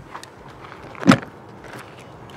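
A vehicle door slams shut.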